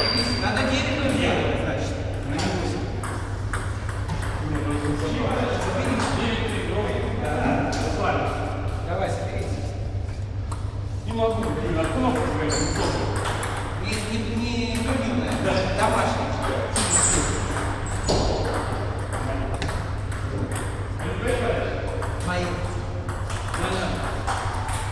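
Table tennis balls click sharply against paddles and tables in a large echoing hall.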